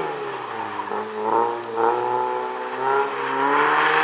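Tyres skid and crunch on loose gravel.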